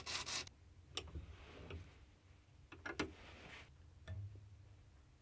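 Metal knocks faintly against a vise.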